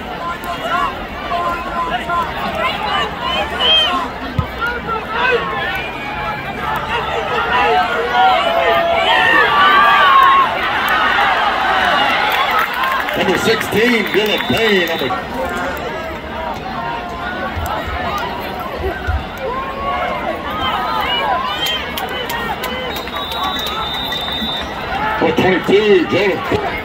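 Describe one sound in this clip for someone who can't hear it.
A large crowd cheers and chatters outdoors.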